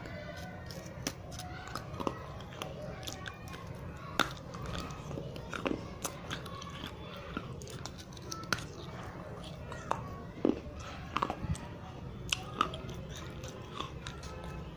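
A young woman bites and crunches something crisp close to a microphone.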